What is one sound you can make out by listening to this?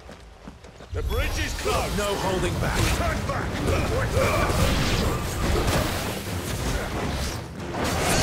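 A sword slashes and clashes in a fight.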